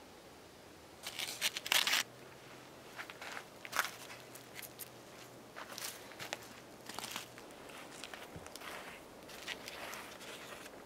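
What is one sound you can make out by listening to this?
Aluminium foil crinkles as foil-wrapped food is handled.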